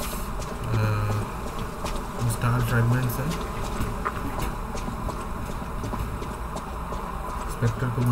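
Footsteps tap on stone as a character runs.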